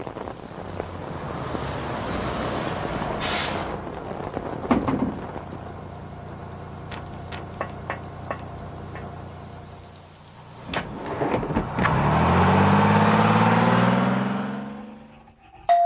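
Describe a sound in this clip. A bus engine rumbles and then revs as the bus pulls away.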